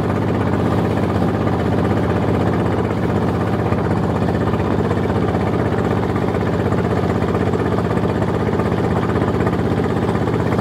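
River water splashes and rushes past.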